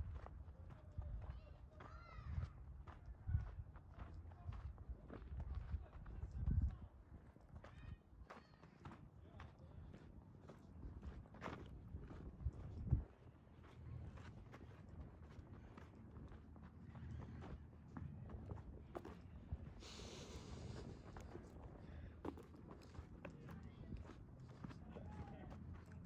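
Wind gusts and rumbles across open ground.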